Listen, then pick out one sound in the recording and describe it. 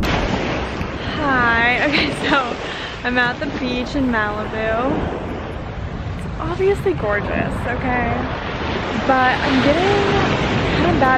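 A young woman speaks cheerfully and close.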